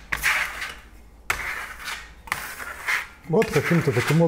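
A pad swishes across a board in quick strokes.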